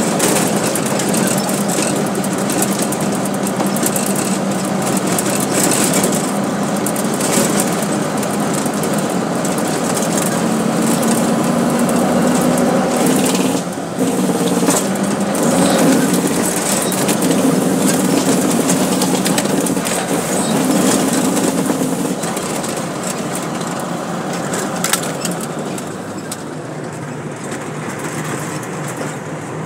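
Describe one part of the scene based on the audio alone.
A truck engine rumbles steadily inside a cab.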